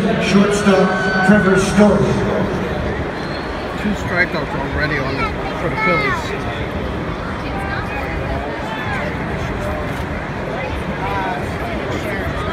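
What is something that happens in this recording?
A large crowd murmurs and chatters outdoors in a stadium.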